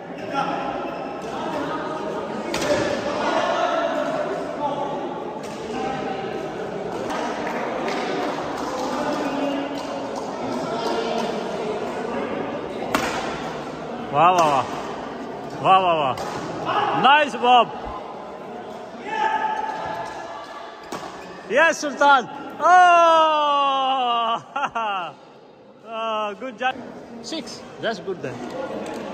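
Rackets hit a shuttlecock with sharp pops in a large echoing hall.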